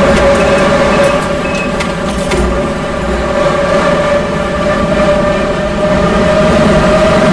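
A subway train rumbles and hums steadily through a tunnel.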